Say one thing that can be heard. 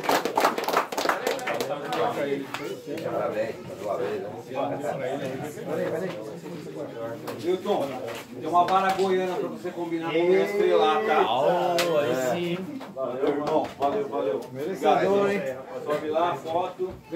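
A man speaks loudly and with animation over a crowd.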